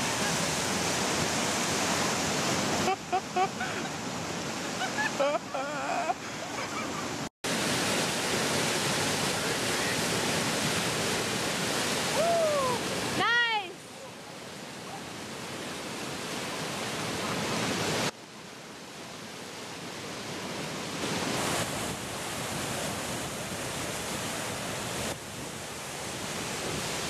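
Rushing river rapids roar and churn loudly outdoors.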